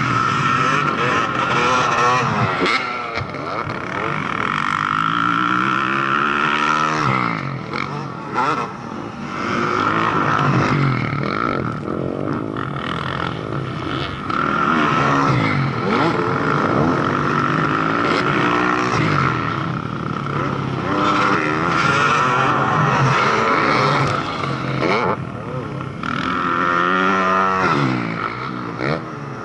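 Dirt bike engines rev loudly, rising and falling in pitch as the bikes race past and jump.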